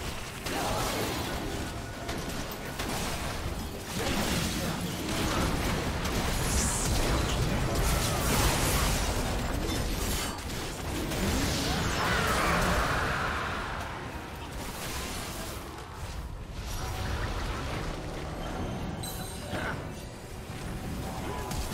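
Game spell effects crackle, whoosh and blast in a busy fight.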